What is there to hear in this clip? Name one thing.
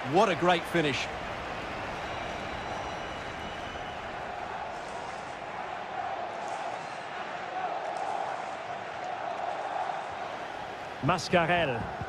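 A stadium crowd roars.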